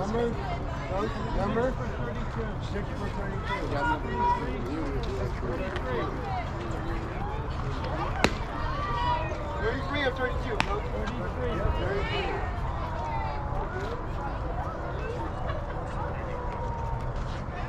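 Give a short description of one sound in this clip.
Young players and adults call out and chatter outdoors at a distance.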